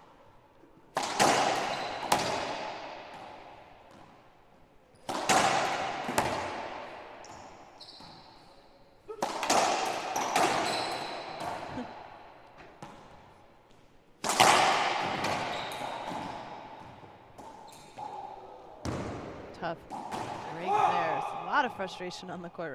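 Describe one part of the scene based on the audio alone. A ball smacks hard off the walls, echoing loudly around a hall.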